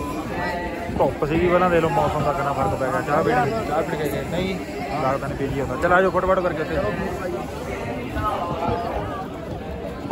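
A young man speaks up close with animation.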